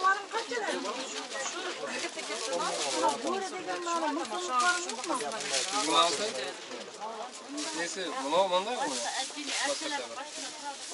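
Women talk nearby in a busy, chattering crowd.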